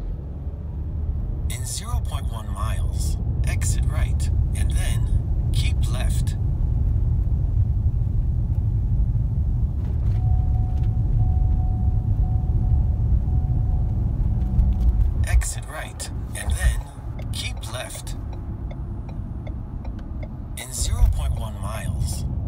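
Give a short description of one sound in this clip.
Tyres rumble steadily on a road, heard from inside a moving car.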